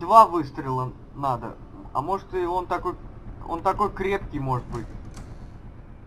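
A wooden door creaks open slowly.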